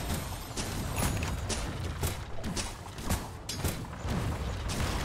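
Sharp magical zaps and hits crack again and again in a fast fight.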